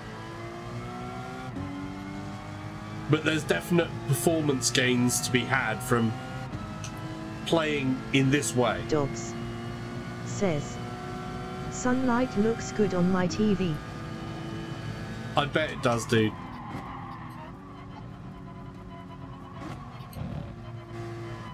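A racing car engine drones steadily and rises in pitch as it speeds up.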